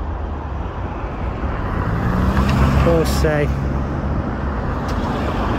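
A car drives past close by on the road.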